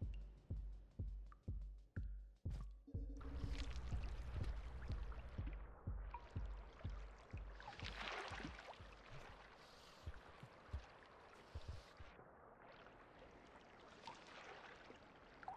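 Footsteps thud quickly and evenly.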